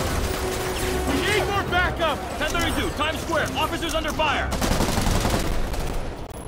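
A man speaks urgently over a police radio.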